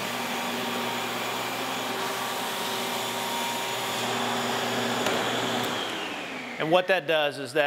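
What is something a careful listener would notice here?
A floor machine hums and whirs steadily, then winds down.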